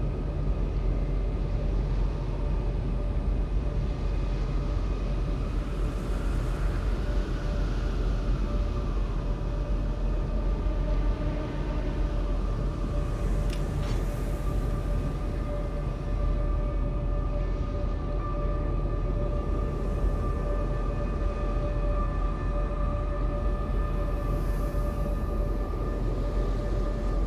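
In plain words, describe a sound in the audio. Water washes against a ship's hull.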